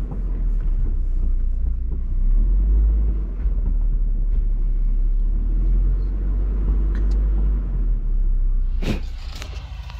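A vehicle engine rumbles low while driving slowly over a rough dirt track.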